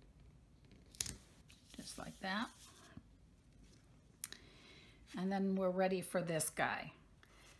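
Card stock rustles and taps as it is handled.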